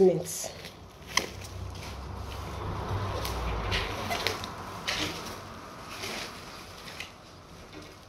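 Plastic sheeting crinkles and rustles.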